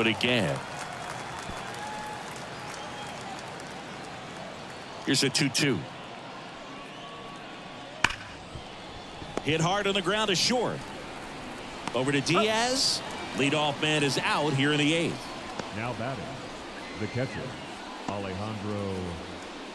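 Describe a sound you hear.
A baseball crowd murmurs in a large stadium.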